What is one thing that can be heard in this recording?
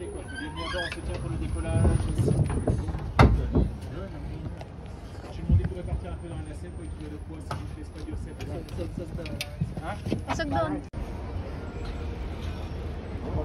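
Adults and children talk among themselves nearby.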